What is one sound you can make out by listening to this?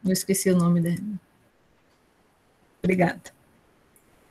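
A young woman speaks in short bursts over an online call.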